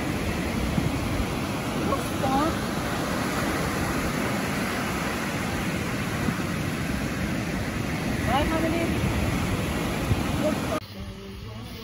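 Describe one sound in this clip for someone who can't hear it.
Ocean waves roll in and crash onto the shore with a steady roar.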